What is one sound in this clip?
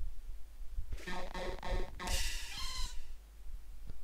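A game creature lets out a short electronic cry as a battle begins.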